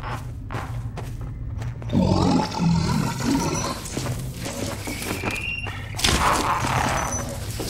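A zombie groans and moans nearby.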